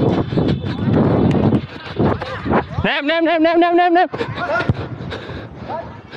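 Footsteps run on artificial turf.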